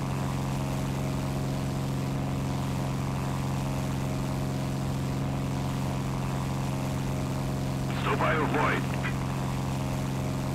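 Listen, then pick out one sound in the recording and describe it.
Twin propeller engines drone steadily.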